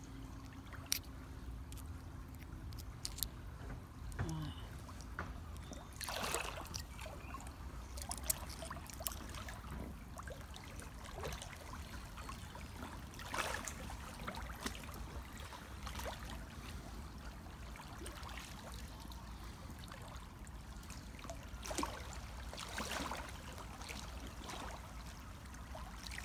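Water trickles and babbles over stones in a shallow stream.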